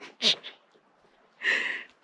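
A young man coughs into his fist.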